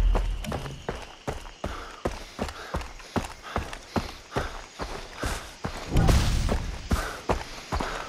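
Footsteps crunch steadily along a dirt path.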